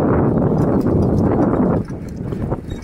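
Wind rushes past while riding outdoors.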